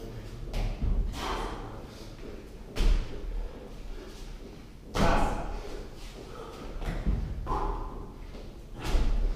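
A man's feet thud on a concrete floor.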